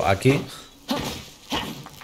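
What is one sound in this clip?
A sword slashes through the air.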